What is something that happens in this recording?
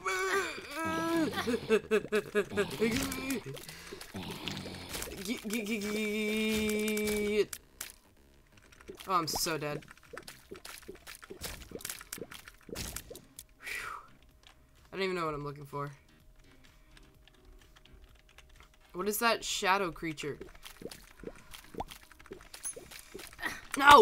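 Small watery shots pop in quick succession.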